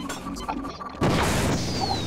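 A weapon fires with a sharp crackling burst.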